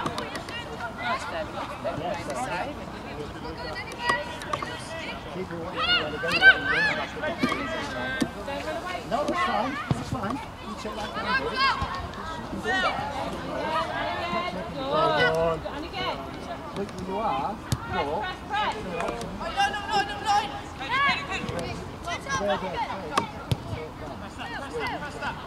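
Players shout to each other across a football pitch outdoors.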